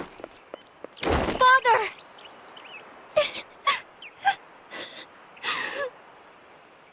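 A young woman sobs and gasps in distress.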